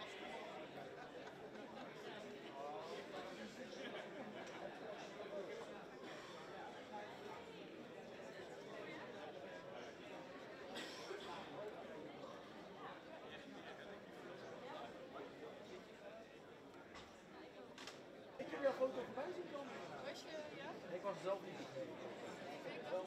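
Many people murmur and chat at once.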